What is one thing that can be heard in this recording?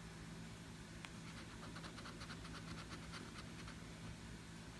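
A coin scratches quickly back and forth across a card, close by.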